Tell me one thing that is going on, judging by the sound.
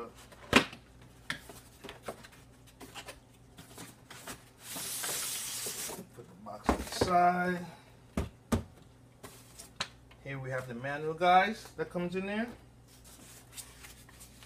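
Cardboard and paper rustle and crinkle as packaging is handled.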